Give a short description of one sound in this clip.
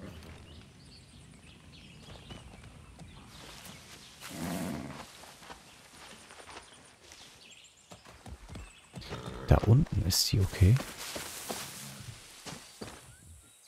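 Footsteps tread through grass and undergrowth.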